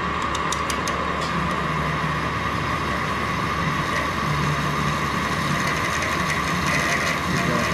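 A drill bit grinds and squeals into spinning metal.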